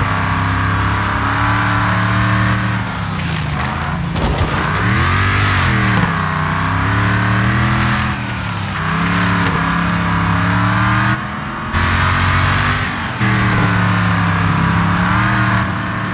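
A car engine roars and revs up and down, shifting gears.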